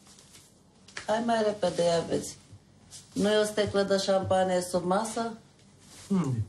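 A middle-aged woman speaks wearily and plaintively nearby.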